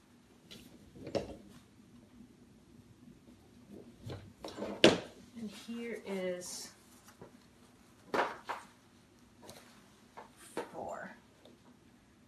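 Mesh fabric rustles as it is pulled and smoothed.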